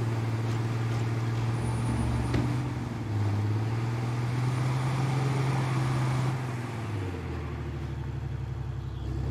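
A heavy truck engine rumbles steadily as it drives along a road.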